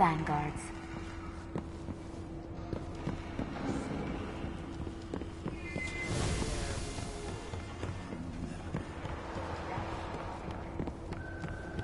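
Footsteps tap on a hard metal floor.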